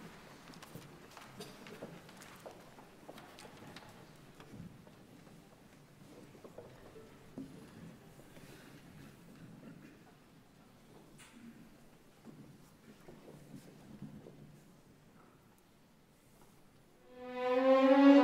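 An orchestra plays softly in a large hall.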